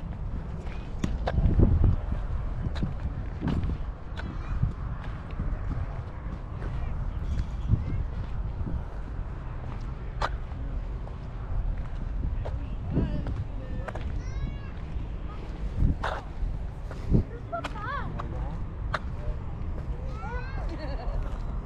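Footsteps thud on a paved path.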